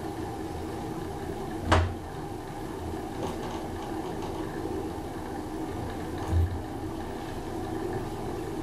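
A traction elevator car hums and rumbles as it travels upward.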